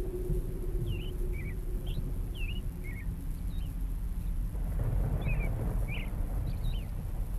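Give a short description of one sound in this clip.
Birds call in short chirps in the distance.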